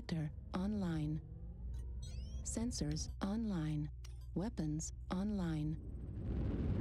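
Electronic tones chirp and warble in quick bursts.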